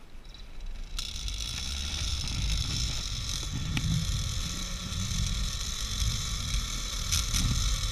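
A zipline trolley whirs along a steel cable.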